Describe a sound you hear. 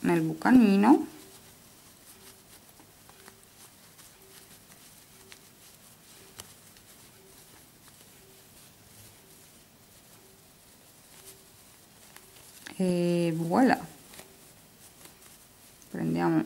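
Soft yarn rustles faintly as it is handled.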